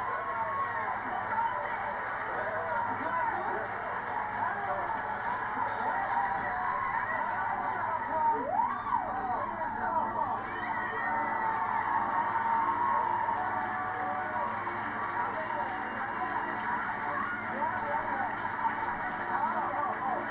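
A studio crowd cheers and shrieks loudly through a television speaker.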